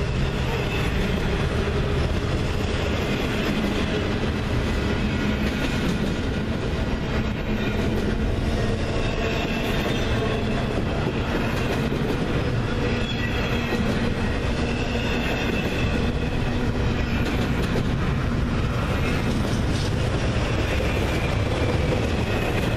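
A long freight train rumbles steadily past, close by.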